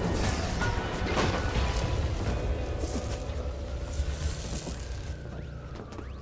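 Energy blasts crackle and boom with a low rumble.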